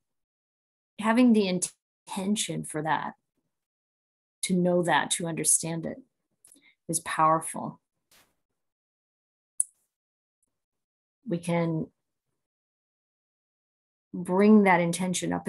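A middle-aged woman speaks calmly into a nearby microphone, pausing between phrases.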